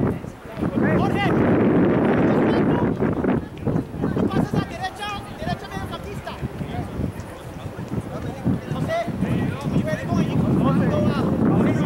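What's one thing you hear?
Wind blusters across an open outdoor field.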